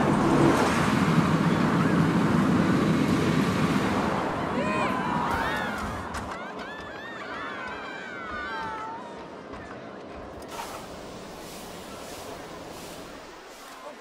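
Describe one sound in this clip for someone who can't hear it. A roller coaster train rumbles loudly along its track, then slows and quiets.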